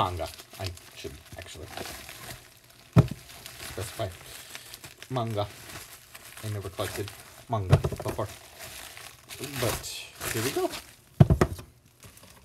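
Paperback books are set down on a wooden shelf with dull knocks.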